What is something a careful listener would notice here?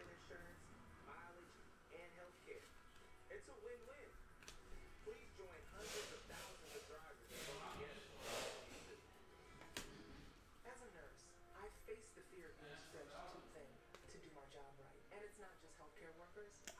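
Trading cards slide and rustle against each other in a hand.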